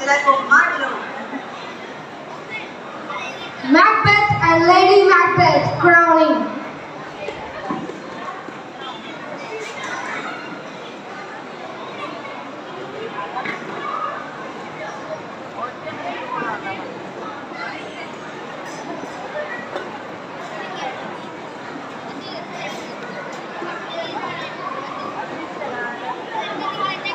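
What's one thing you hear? A crowd of young people chatters in a large echoing hall.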